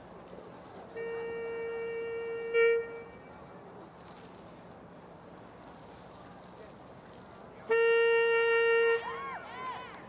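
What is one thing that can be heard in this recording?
A marching band plays loud, sustained chords outdoors, with pauses between them.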